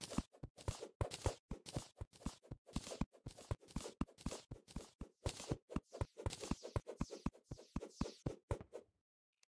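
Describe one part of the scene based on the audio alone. An axe chops at wood in a quick, steady rhythm.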